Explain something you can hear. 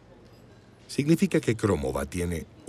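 A woman speaks anxiously and close by.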